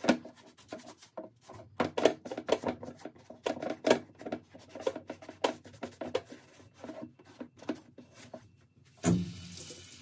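A sponge scrubs briskly against leather.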